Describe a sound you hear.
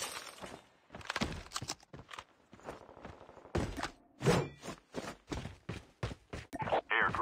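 Footsteps crunch over gravelly ground at a steady pace.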